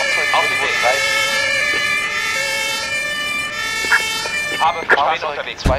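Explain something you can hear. A siren wails loudly from a fire engine.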